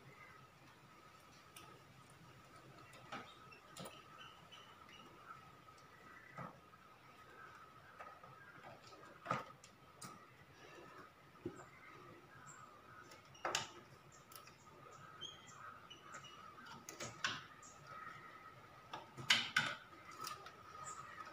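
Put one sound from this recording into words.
Plastic parts click and knock sharply, close by.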